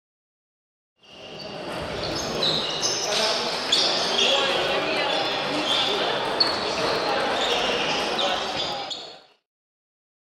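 Table tennis balls click on tables and bats.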